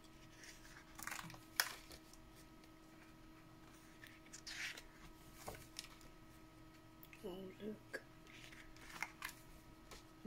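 Stiff paper pages rustle and flip over.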